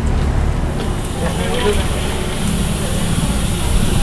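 A handful of peanuts pours into hot oil.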